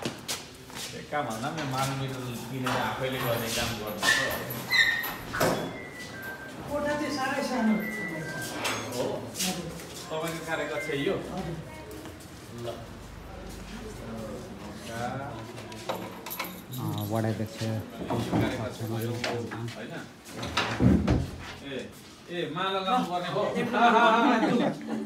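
Men talk with each other nearby.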